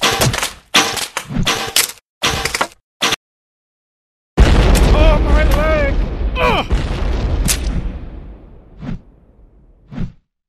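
Cartoon bodies crash and splatter with loud impacts.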